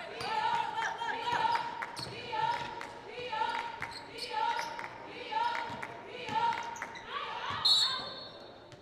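Young women chant in rhythm, echoing in a large gym.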